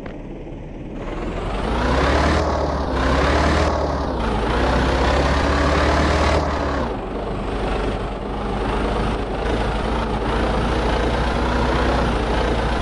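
A truck engine revs up, rising and dropping in pitch as the gears change.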